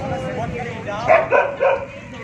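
A large dog barks several times close by.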